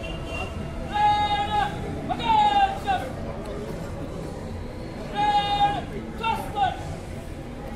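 A man shouts drill commands loudly outdoors.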